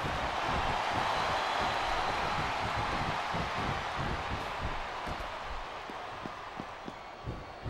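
A large crowd cheers in a big arena, slowly fading.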